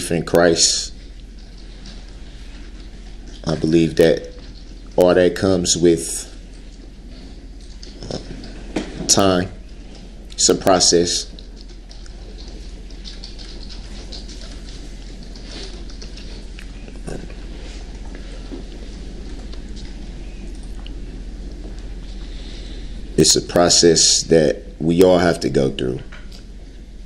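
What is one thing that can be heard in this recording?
A man speaks in short bursts with long pauses.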